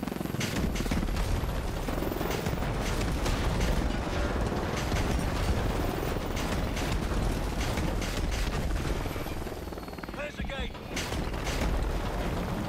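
Explosions boom and crackle repeatedly.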